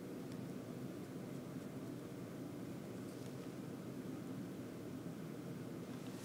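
A paintbrush softly strokes across a canvas.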